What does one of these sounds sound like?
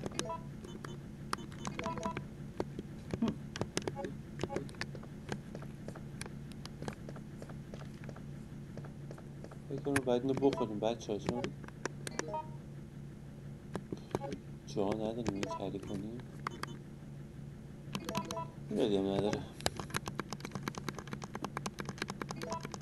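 Short electronic beeps sound as a menu cursor moves.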